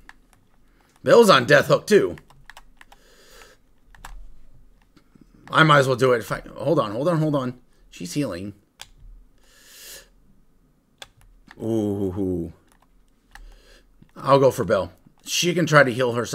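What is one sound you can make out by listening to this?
A man talks with animation through a headset microphone.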